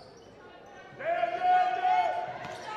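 Spectators shout and cheer loudly in an echoing gym.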